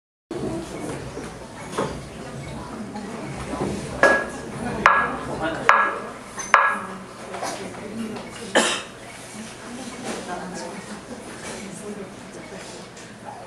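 An electric bass guitar plays low notes through an amplifier.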